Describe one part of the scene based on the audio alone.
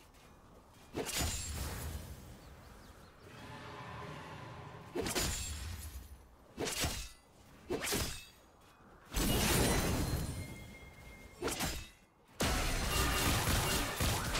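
Magic blasts and impacts crackle in loud bursts during a fight.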